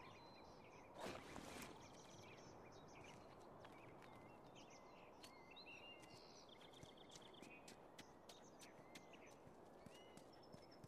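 Footsteps shuffle on the ground.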